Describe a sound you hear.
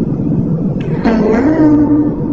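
A sheep bleats loudly close by.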